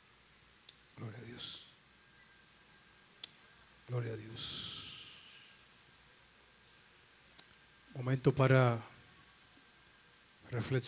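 A man speaks into a microphone in short bursts, heard through loudspeakers in an echoing hall.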